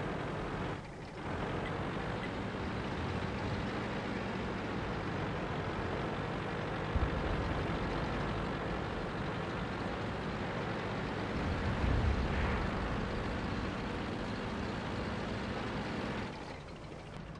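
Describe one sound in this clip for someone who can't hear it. A heavy tank engine rumbles and clanks steadily as the tank drives.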